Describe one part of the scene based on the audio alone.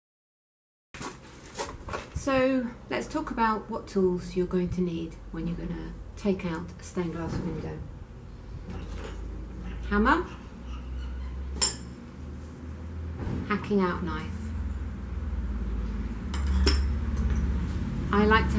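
A woman speaks to the listener close by in a lively, chatty way.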